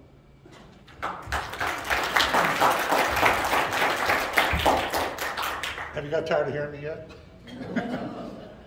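Men laugh and chatter close by.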